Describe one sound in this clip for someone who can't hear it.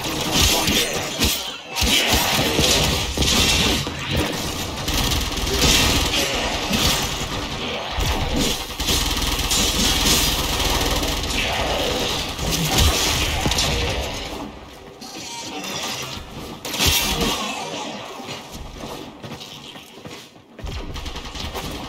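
Blades slash and clang in a fast fight.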